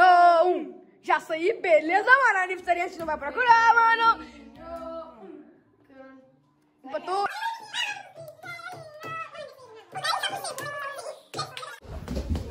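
Children shout and sing excitedly.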